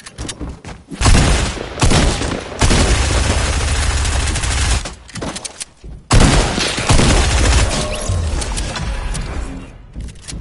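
Game gunfire crackles in rapid bursts.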